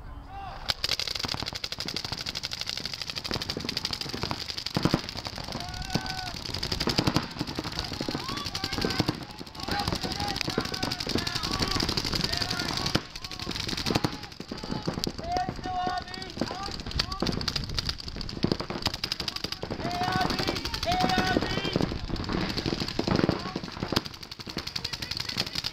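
Paintball markers fire in rapid bursts of sharp pops outdoors.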